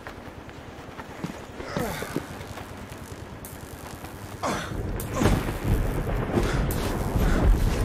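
Quick footsteps and thumps clatter as a small figure climbs and jumps.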